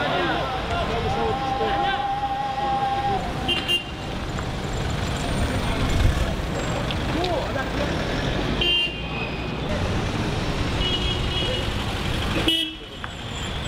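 A crowd of young men shout outdoors.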